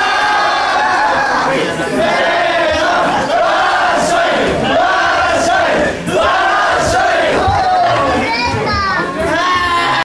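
A group of young men chant and shout together loudly in an echoing hall.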